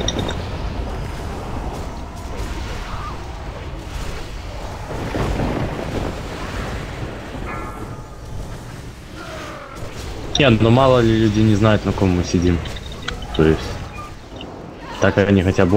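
Magic spells crackle and whoosh in a busy fight.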